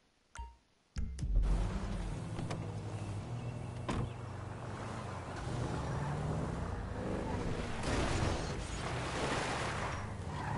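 A car engine roars as a car drives along a road.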